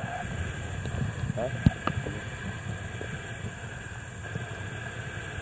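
Water gurgles and rumbles softly underwater.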